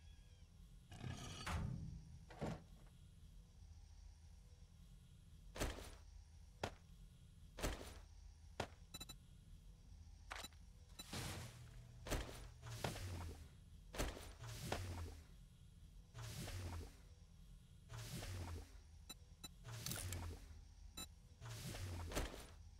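Short game menu clicks and whooshes sound again and again.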